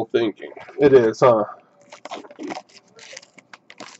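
Cardboard rips and tears as a box is pulled open.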